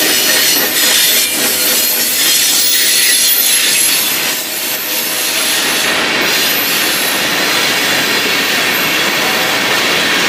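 Freight train cars rumble and clatter steadily along the rails close by.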